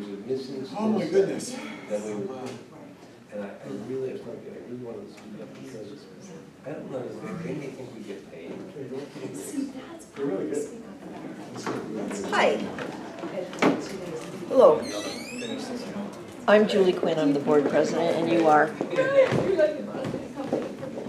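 Several men and women talk and chatter at once in a room.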